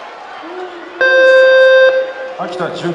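A loud buzzer sounds once in the arena.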